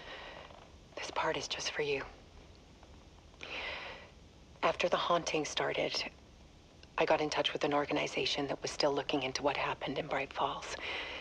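A woman speaks quietly and tensely, close by.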